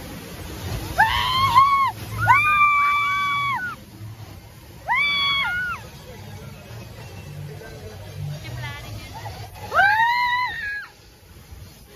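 A young girl screams in high-pitched bursts close by.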